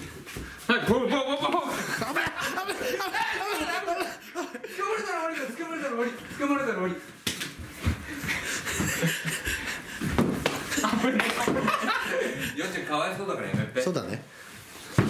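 Several men laugh and shout with excitement nearby.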